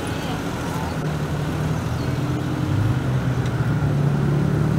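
A motor scooter engine hums as it approaches.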